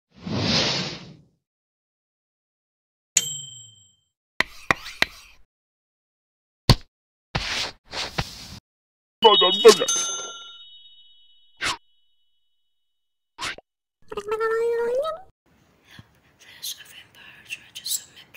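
Short cartoonish game sound effects chime, pop and click.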